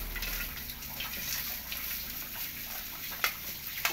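Vegetables sizzle softly in a hot pan.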